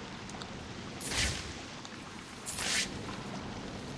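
A grappling line whooshes through the air twice.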